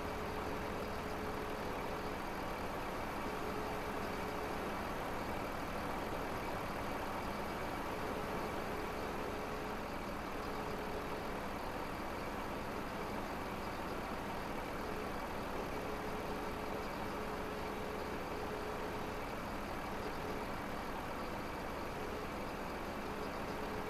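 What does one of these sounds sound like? A diesel engine hums steadily.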